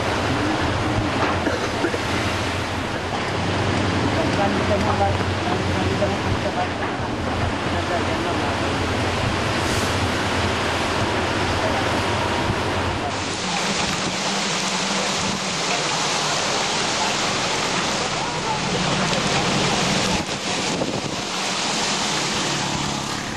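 A strong wind roars.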